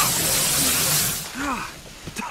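Water sprays hard from a hose and splashes down.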